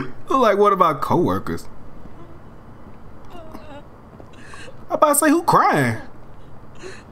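A young man talks and laughs with animation close to a microphone.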